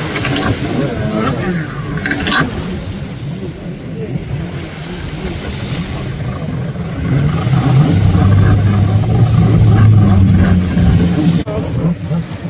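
A jet ski engine revs across the water.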